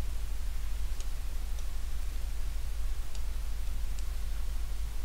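A stylus taps lightly on a touch board a few times.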